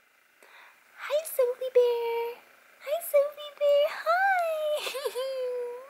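A baby coos and squeals happily close by.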